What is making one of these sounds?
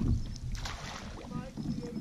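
Water splashes beside a small boat.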